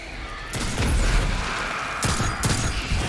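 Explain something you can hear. An explosion bursts with a crackling roar.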